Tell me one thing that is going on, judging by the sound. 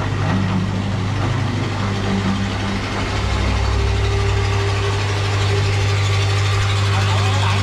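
A small diesel engine runs with a steady, throbbing rumble close by.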